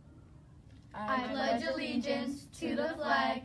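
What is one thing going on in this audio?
A group of young people recite together in unison, close to a microphone.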